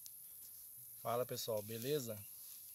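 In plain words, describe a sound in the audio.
A middle-aged man speaks calmly, close by, outdoors.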